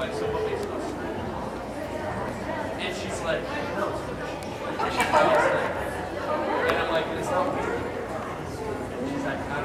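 A woman calls out commands with animation in a large echoing hall.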